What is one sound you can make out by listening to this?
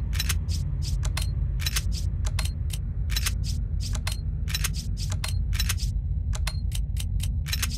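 Short electronic menu blips tick rapidly and repeatedly.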